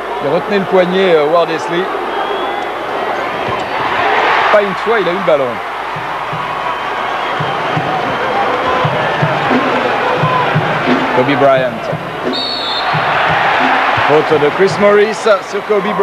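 A large crowd cheers and roars in an echoing arena.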